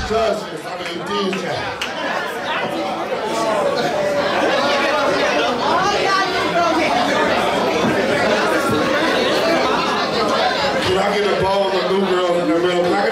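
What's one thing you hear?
A young man raps loudly into a microphone over a loudspeaker.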